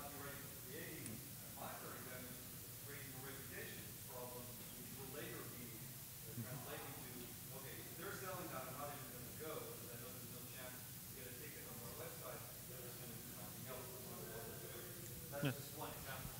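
A middle-aged man speaks calmly from a distance in a room with some echo.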